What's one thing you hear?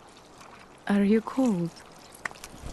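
A young woman speaks softly and close.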